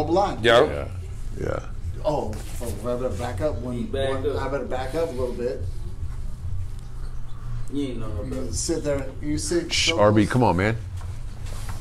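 A man talks nearby in a relaxed voice.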